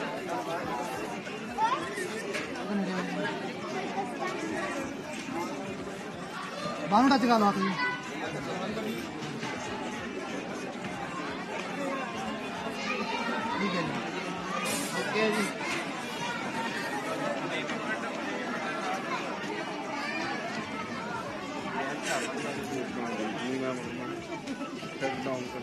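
Several men and women chatter and call out nearby.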